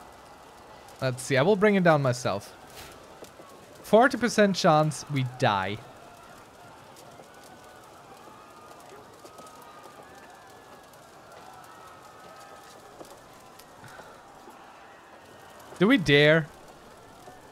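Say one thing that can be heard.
A man speaks through a microphone in short bursts.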